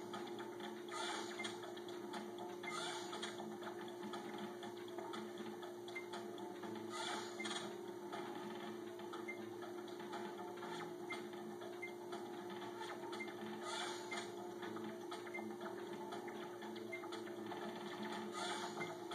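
Electronic game music plays from a television speaker.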